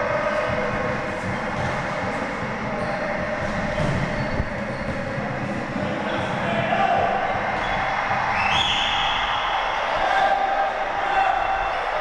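Men call out to each other during play.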